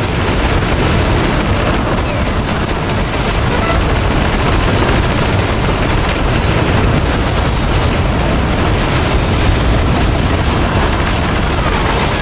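A rapid-fire gun shoots in bursts.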